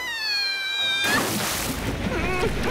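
Liquid splashes loudly.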